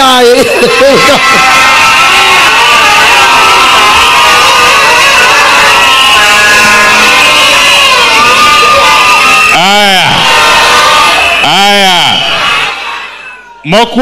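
A crowd sings loudly together.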